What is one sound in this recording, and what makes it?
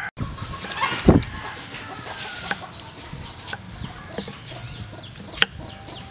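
A knife chops through an onion onto a wooden board.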